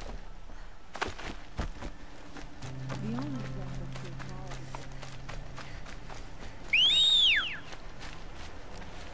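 Footsteps swish through grass.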